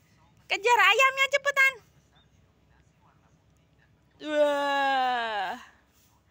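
A small child's voice calls out close by.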